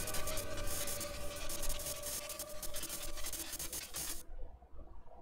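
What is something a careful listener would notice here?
Electric energy crackles and hums loudly.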